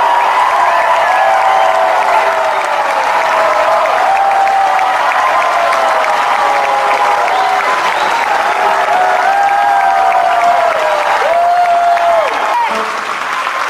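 A large crowd cheers and chants loudly in a big echoing hall.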